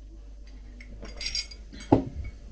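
A woman sips a drink with a soft slurp.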